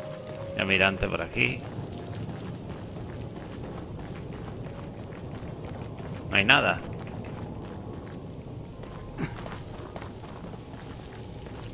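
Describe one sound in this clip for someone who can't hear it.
Footsteps crunch on gravel and dry grass.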